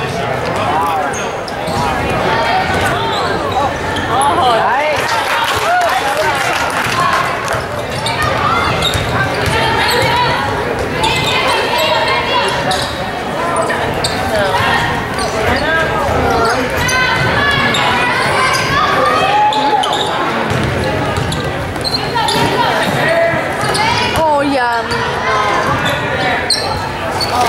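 A crowd of spectators cheers and calls out in a large echoing gym.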